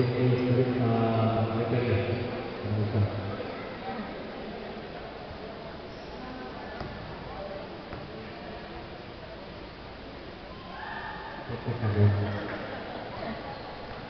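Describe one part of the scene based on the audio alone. Spectators talk and call out in a large echoing hall.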